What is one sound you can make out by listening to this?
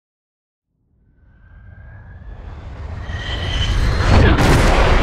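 A jet plane approaches low overhead, its engine roar swelling louder.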